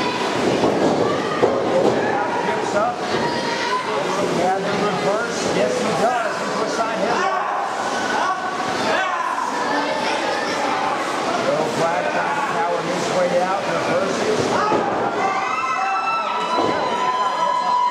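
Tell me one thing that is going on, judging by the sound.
Bodies thud onto a wrestling ring's canvas.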